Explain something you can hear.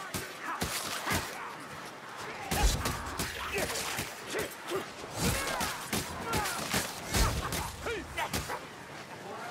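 Blades slash and thud into bodies in quick, repeated blows.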